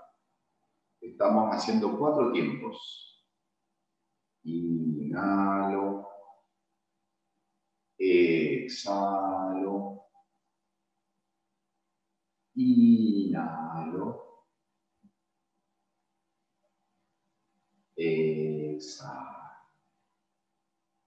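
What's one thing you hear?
A middle-aged man speaks calmly into a close microphone, pausing between short phrases.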